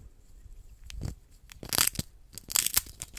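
A hamster crunches loudly on food right at a microphone.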